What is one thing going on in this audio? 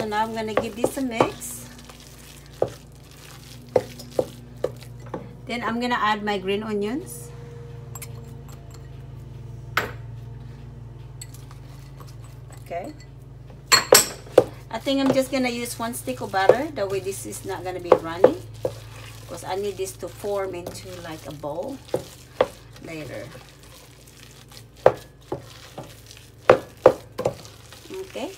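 Soft mashed potatoes squish as they are stirred.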